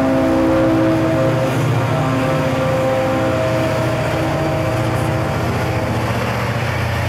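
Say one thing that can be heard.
A locomotive engine gives off a steady whine as it passes.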